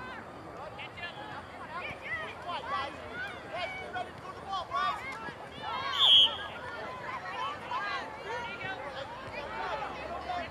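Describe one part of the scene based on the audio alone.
Young players and spectators shout and call out across an open field outdoors.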